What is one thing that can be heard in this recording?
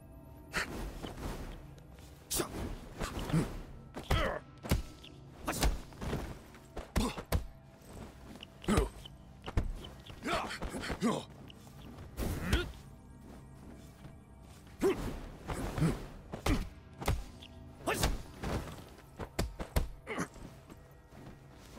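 Punches and kicks land with heavy thuds again and again.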